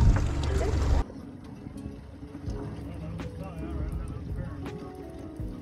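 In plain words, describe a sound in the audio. Water bubbles softly in a tank.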